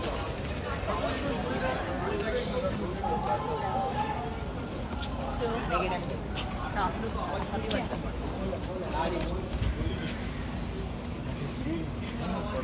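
Several men and women talk and call out nearby outdoors.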